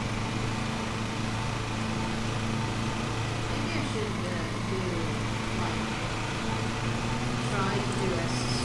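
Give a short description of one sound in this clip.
A lawn mower engine hums steadily.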